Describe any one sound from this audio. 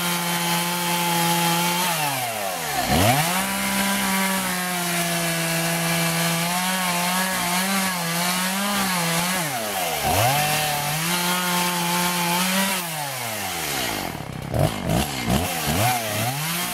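A chainsaw engine idles and revs up and down loudly outdoors.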